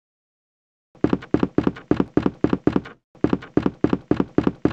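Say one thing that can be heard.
Footsteps thud at an even pace on a wooden floor.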